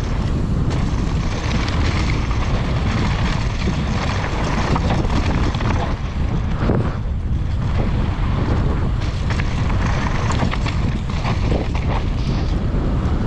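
Bike tyres crunch and rattle over a loose, stony dirt trail.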